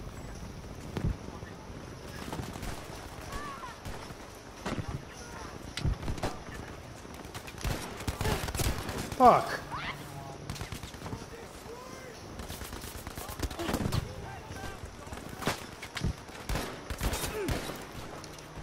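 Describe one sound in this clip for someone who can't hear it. Rifle shots crack out one by one, with sharp echoes.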